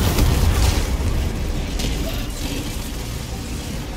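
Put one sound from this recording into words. Explosions roar and rumble.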